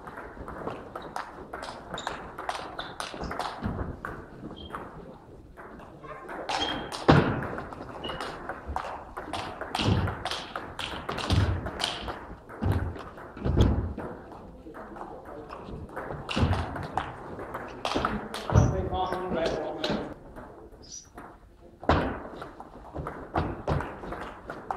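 A table tennis ball clicks against paddles and the table in a large echoing hall.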